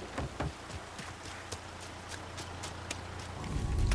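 Footsteps splash on wet ground.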